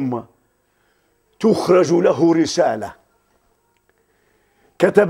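A middle-aged man speaks with animation through a close microphone, in short bursts with pauses.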